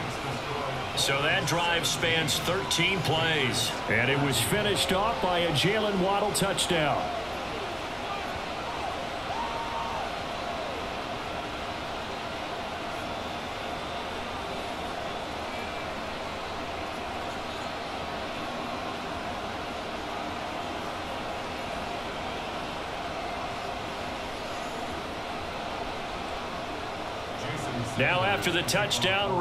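A large stadium crowd murmurs steadily.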